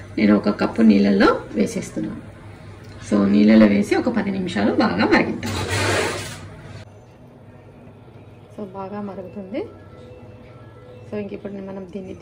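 Water bubbles and simmers in a pot.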